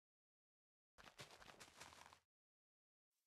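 A block is placed with a dull thud.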